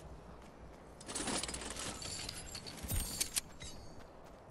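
A box creaks open and items clatter out.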